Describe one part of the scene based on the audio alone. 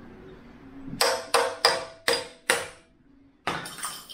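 Metal tools clank together.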